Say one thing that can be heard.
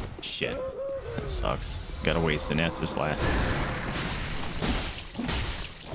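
Swords clang and clash in a fight.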